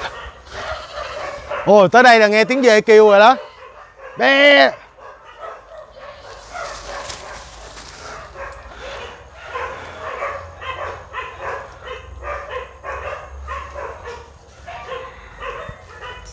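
Leaves and grass rustle as a man pushes through undergrowth.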